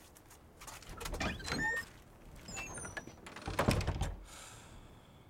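A door opens and bumps shut.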